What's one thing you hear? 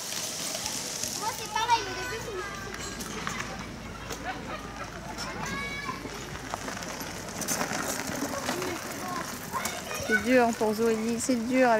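Plastic wheels of pedal karts crunch over gravel.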